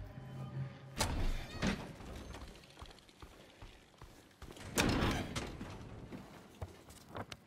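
Footsteps scuff slowly on a hard stone floor.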